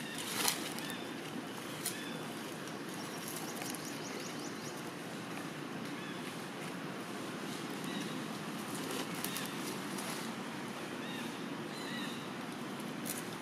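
Dry leaves rustle and crackle as macaques shift about on the ground.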